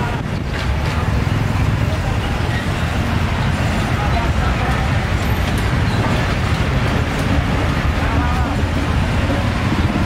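A motorbike engine idles nearby.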